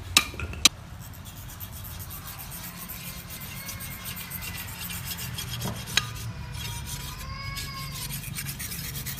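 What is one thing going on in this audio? A knife blade scrapes back and forth on a sharpening stone.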